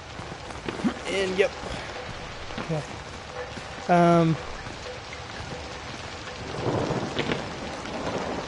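A young man speaks with animation into a close microphone, gasping and exclaiming.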